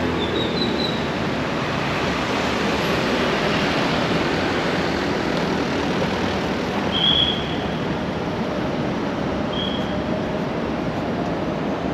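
City traffic rumbles steadily past on a nearby road.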